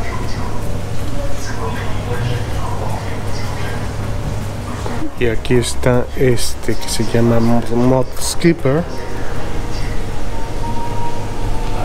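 An aquarium pump hums steadily.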